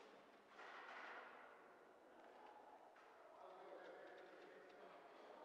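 Adults murmur and talk softly in a large echoing hall.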